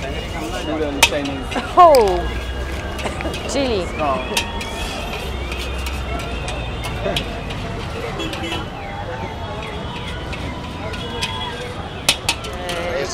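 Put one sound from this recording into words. A metal spatula scrapes and clangs against a wok.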